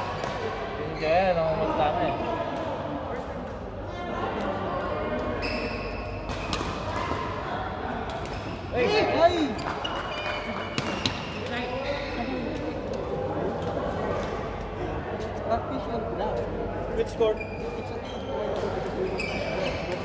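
Men call out and shout to each other in a large echoing hall.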